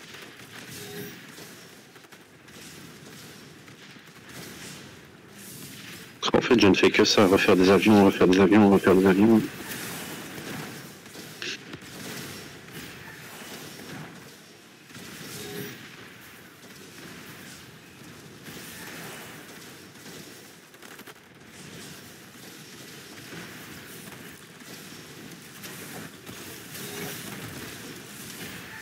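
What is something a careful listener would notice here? Muffled explosions and gunfire pop repeatedly in a battle.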